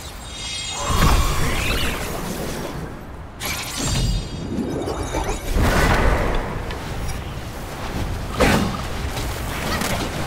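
Heavy blows clash in a game battle.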